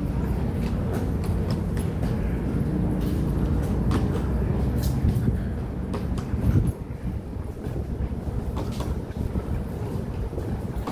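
Suitcase wheels roll and rattle over concrete.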